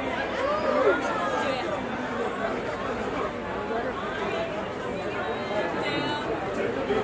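A crowd of women and men chatter and call out all around.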